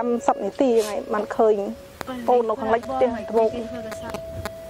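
A woman speaks in a trembling, tearful voice close by.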